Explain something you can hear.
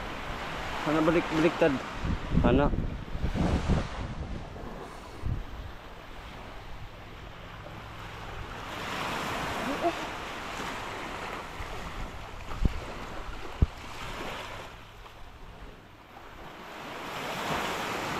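Waves wash gently onto a beach in the distance.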